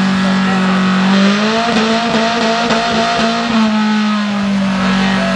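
Tyres squeal as they spin on the road.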